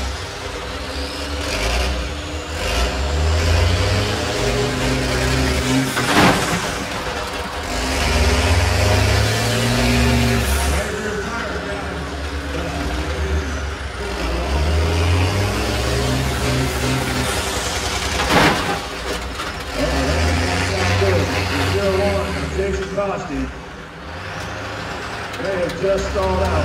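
Bus engines roar and rev loudly, surging in repeated bursts.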